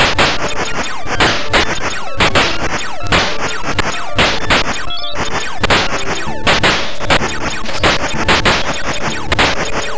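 Upbeat electronic game music plays steadily.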